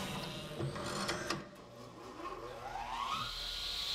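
Mechanical arms whir as they move overhead.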